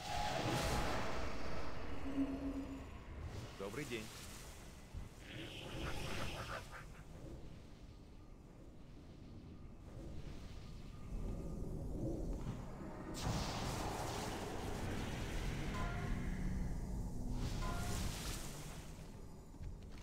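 Game spell effects whoosh and shimmer in bursts.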